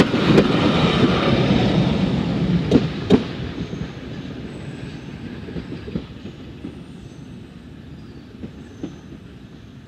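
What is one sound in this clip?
Train wheels clack sharply over rail joints.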